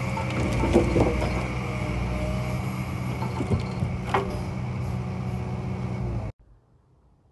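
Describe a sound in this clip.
Hydraulics on a log loader whine.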